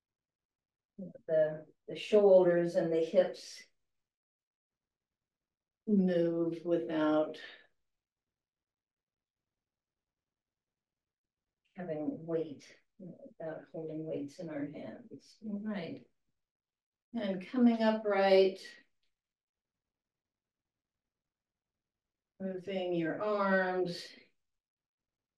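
An elderly woman speaks calmly in short phrases, heard through a microphone.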